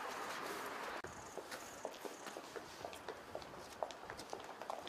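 Footsteps tap on a hard path outdoors.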